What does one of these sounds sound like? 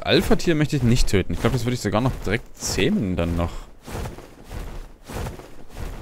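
Large wings flap in a steady rhythm.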